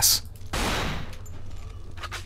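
Gas hisses loudly from a burst vent.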